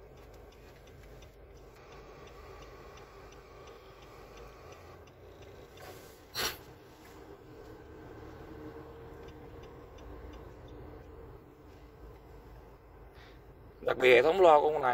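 A car radio gives faint static while stations are tuned.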